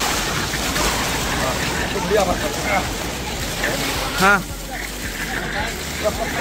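Water splashes in a pool outdoors.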